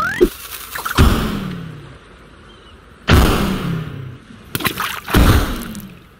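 Cartoon bombs explode with deep booming thuds.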